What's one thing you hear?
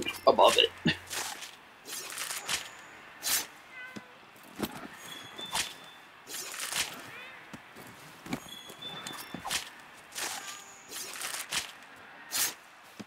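A blade slices repeatedly into flesh with wet, squelching cuts.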